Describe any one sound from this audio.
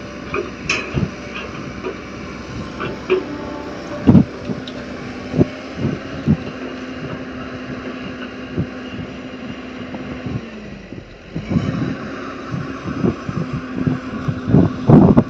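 An excavator engine rumbles steadily.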